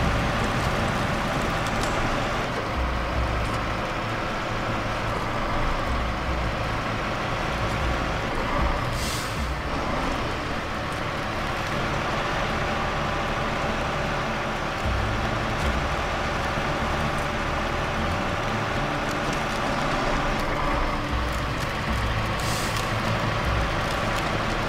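A truck's tyres crunch over snow.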